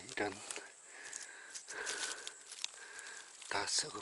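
A stick scrapes and rustles through dry leaves.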